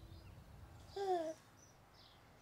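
A baby giggles.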